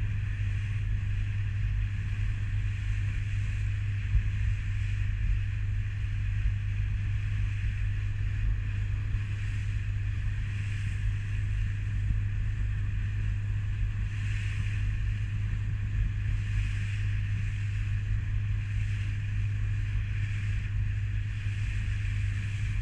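A boat's motor drones steadily at speed.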